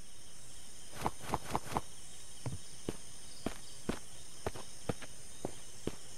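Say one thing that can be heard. Footsteps tread steadily on soft ground.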